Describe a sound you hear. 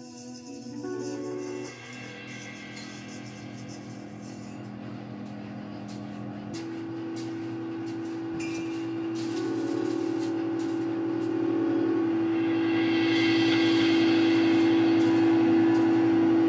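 Electric guitar notes ring out through loudspeakers, building into a loud sustained drone.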